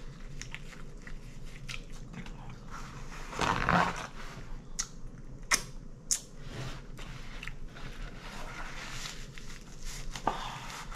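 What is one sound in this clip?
Paper rustles as a woman wipes her face.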